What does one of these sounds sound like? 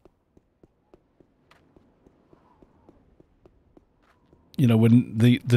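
Footsteps crunch on snow at a steady pace.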